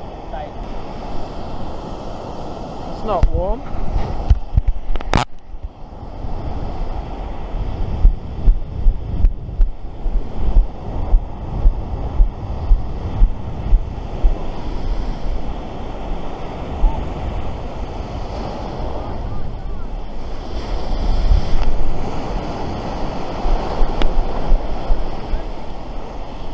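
Waves break and wash up on a sandy shore nearby.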